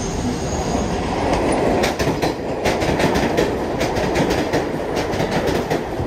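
A subway train rumbles and rattles loudly past on the elevated tracks.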